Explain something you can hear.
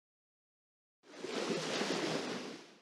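Water splashes and hisses around a fishing boat.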